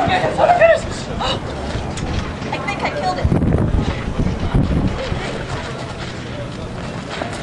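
Feet scuffle on a dirt ground.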